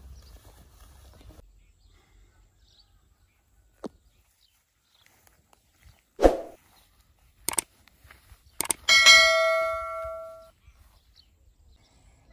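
A man walks through tall grass that rustles underfoot.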